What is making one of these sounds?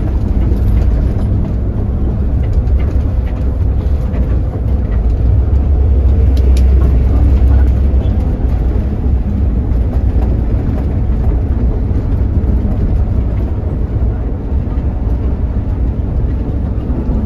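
A large vehicle's engine rumbles low and steady from inside the cab.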